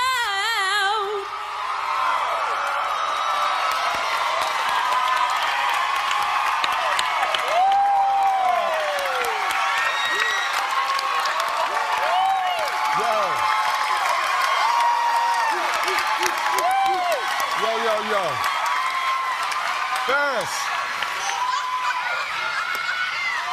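A large crowd cheers and applauds loudly in a big hall.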